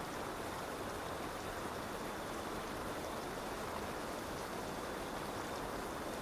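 Wind blows steadily and strongly outdoors.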